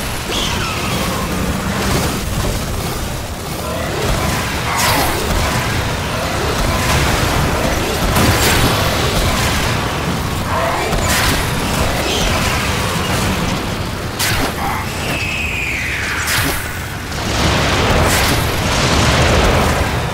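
Gunfire and blasts crack repeatedly.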